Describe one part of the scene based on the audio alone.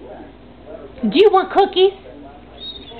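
A dog gives a short burst of yelping barks.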